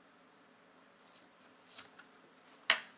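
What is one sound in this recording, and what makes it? Scissors snip through paracord.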